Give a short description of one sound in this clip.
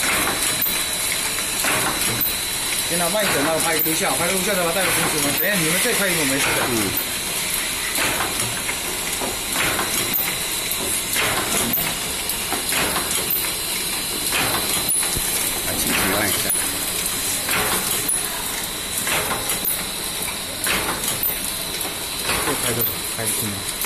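A machine clicks and thumps in a steady rhythm.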